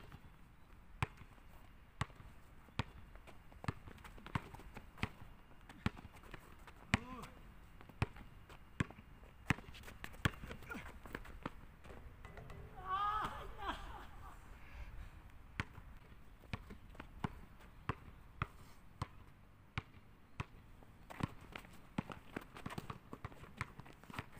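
A basketball bounces repeatedly on a hard outdoor court.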